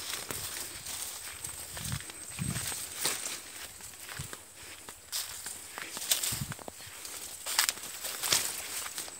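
Dry cane leaves rustle and swish in the wind.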